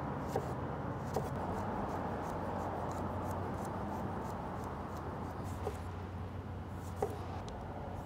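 A knife chops on a wooden cutting board with sharp taps.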